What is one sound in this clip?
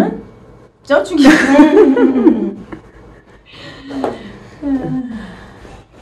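A young woman laughs loudly up close.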